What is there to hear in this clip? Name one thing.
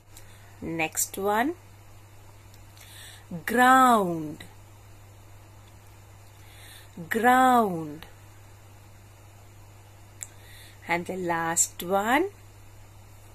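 A woman speaks slowly and clearly into a microphone, with long pauses.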